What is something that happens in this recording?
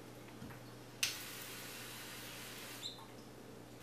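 A spray bottle hisses as it mists water.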